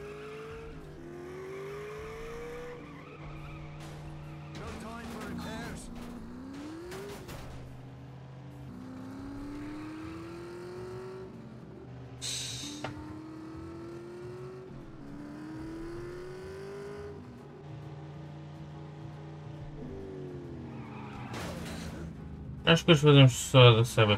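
A racing car engine revs up and down as it shifts through gears.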